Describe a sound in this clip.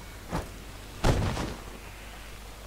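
A body falls and thuds heavily onto a wooden floor.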